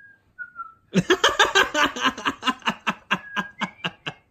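A young girl laughs loudly in quick bursts, close by.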